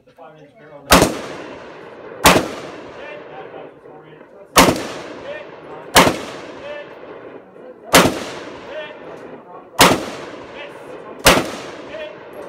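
A man fires a pistol in single sharp shots that echo outdoors.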